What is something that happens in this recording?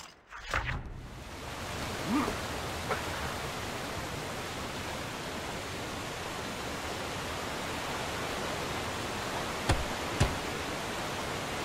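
Water rushes steadily in the background.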